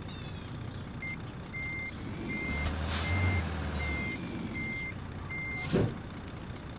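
A reversing alarm beeps steadily and evenly.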